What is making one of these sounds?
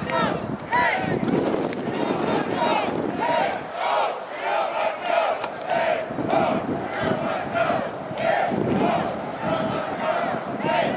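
A crowd shouts and cheers in the distance outdoors.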